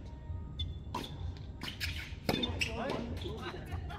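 Tennis balls are struck with rackets, in sharp pops.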